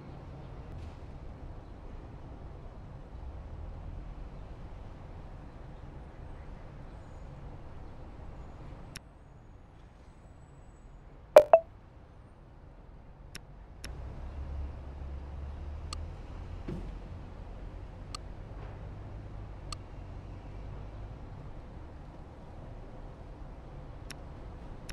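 Aircraft engines hum low and steady in the distance.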